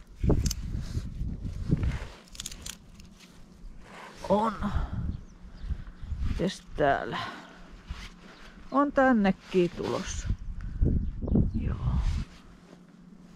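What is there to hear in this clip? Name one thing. Footsteps crunch on dry grass and stony ground.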